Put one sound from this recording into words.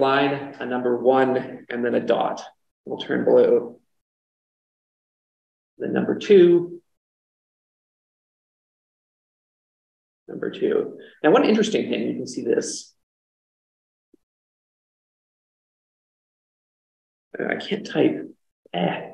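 A man speaks calmly through a microphone, pausing now and then.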